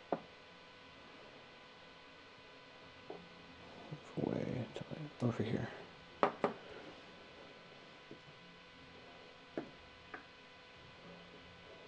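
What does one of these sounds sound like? Small plastic figures tap softly on a tabletop.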